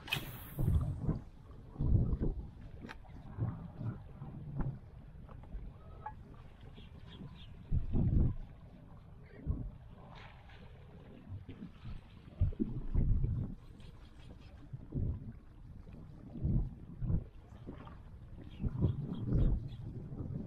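Water splashes and laps against a moving boat's hull.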